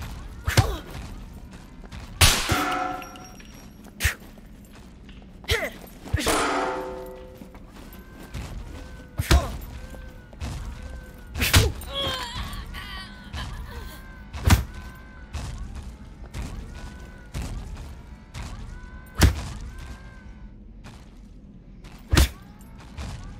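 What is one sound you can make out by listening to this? Heavy blows thud sharply, one at a time, every few seconds.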